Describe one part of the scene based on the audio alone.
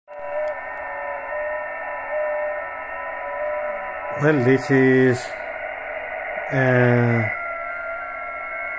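Static hisses steadily from a radio loudspeaker.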